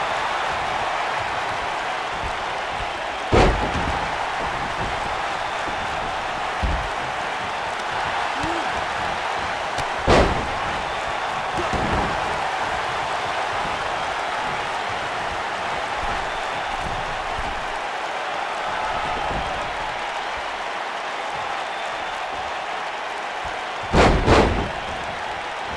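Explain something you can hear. A crowd cheers and murmurs steadily in a large arena.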